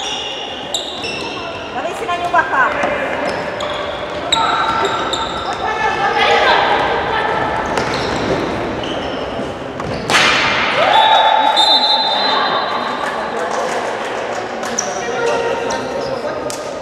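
Young girls shout to each other as they play.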